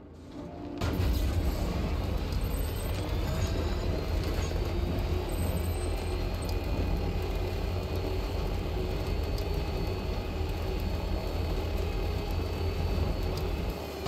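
A heavy vehicle's engine rumbles steadily as it drives along a road.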